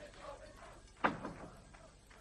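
A door bangs shut nearby.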